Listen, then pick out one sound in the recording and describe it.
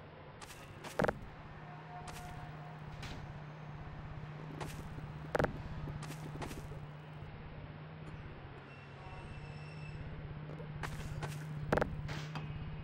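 Heavy concrete blocks thud onto a wooden seesaw.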